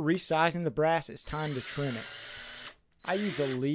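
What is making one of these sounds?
A cordless power driver whirs briefly.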